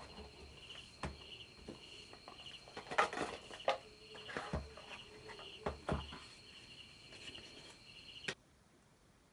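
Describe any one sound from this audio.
Cardboard boxes slide and tap against each other.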